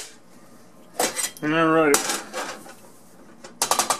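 Sugar pours with a soft hiss into a metal pot.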